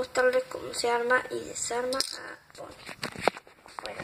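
A small plastic toy clatters onto a hard tile floor.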